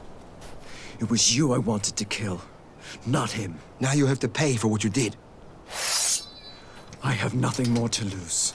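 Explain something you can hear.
A young man speaks in a low, tense voice close by.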